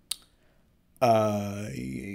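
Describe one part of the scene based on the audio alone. A young man lets out a long, drawn-out groan close to a microphone.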